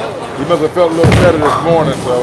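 Bowling pins crash and scatter.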